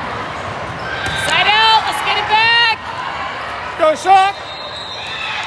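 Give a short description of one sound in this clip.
Young women shout and cheer loudly.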